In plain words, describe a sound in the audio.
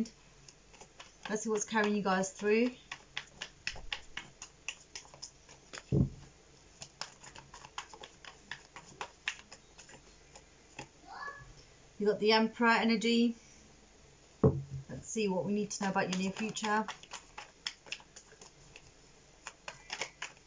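Cards are shuffled and flicked with quick soft clicks.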